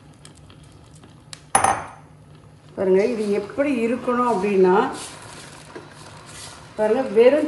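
A wooden spatula stirs liquid in a metal pot.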